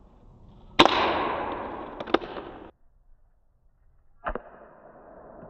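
A pistol fires sharp shots that echo through a large, empty hall.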